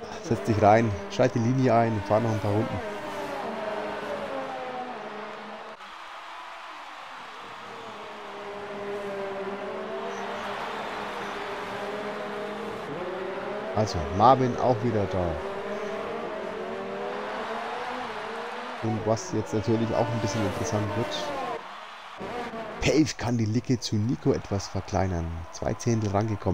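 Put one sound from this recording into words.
Racing car engines roar and whine as they rev up and down.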